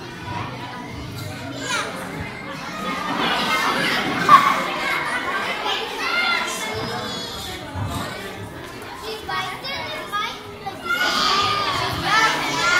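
A young girl speaks through a microphone and loudspeaker in a room with some echo.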